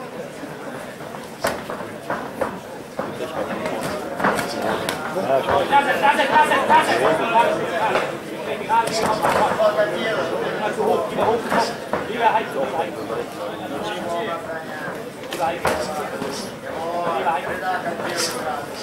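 A crowd of men and women shouts and cheers around the fight.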